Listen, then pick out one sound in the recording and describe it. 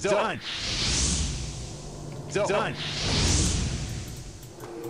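Fireballs whoosh and burst with a roar.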